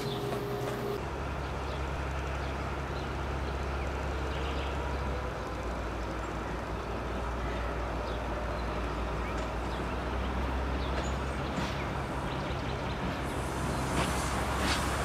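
A diesel locomotive engine rumbles steadily as it slowly draws nearer.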